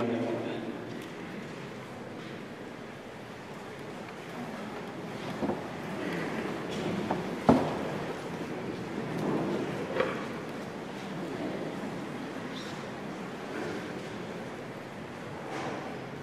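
A man speaks calmly through a microphone in a reverberant hall.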